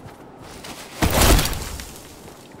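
A short chime sounds.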